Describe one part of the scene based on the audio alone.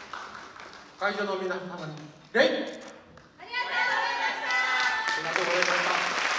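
A group of children shout and chant together on a stage.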